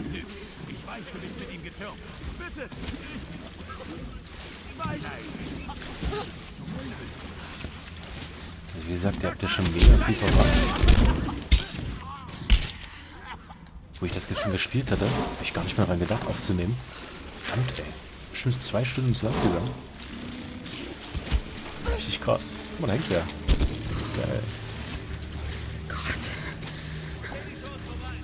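Water splashes as someone wades through it.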